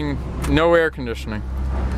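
A dashboard knob clicks as it is turned.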